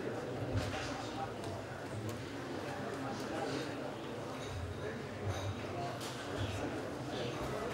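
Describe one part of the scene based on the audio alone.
A middle-aged man reads out calmly into a microphone.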